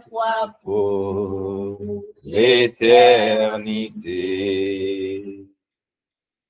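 A woman sings over an online call.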